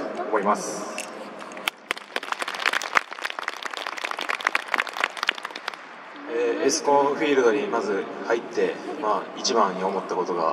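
A young man speaks calmly into a microphone, heard through loudspeakers.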